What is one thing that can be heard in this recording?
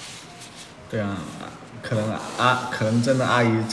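A young man talks casually and close up.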